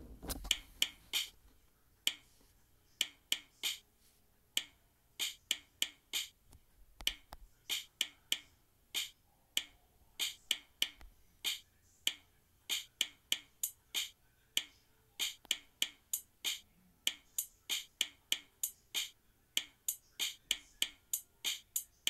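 Electronic drum beats tap out a quick, steady rhythm.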